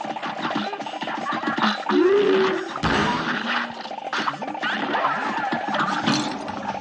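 Bouncy video game music plays throughout.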